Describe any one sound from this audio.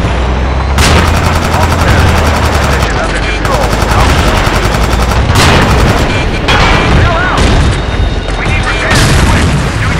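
A tank cannon fires with loud, echoing booms.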